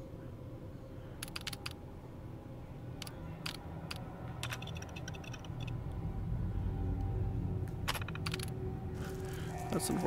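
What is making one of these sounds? Short electronic clicks and beeps sound as a computer terminal is operated.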